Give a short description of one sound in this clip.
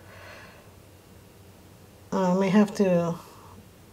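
Liquid pours softly into a mold.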